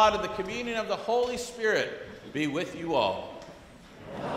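A man speaks with animation through a microphone in a large echoing room.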